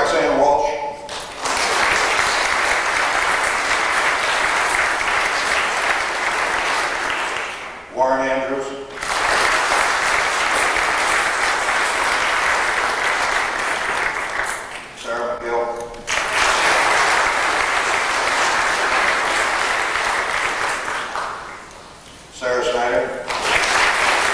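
An elderly man speaks a few short words calmly, now and again.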